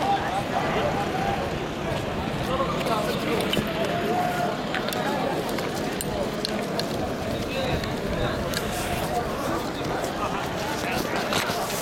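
A crowd of young men shouts and calls out outdoors.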